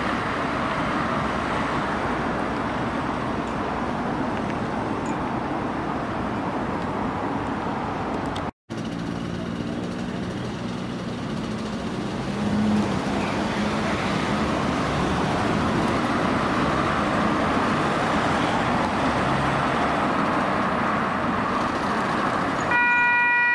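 Road traffic rumbles.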